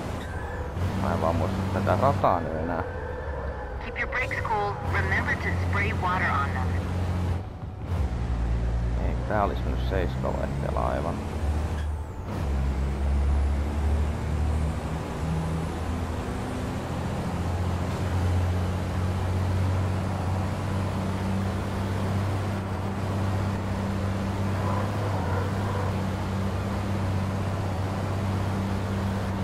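A truck engine drones steadily, its pitch climbing as it speeds up.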